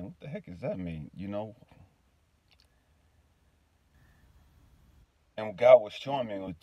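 A man speaks casually close to the microphone, pausing between phrases.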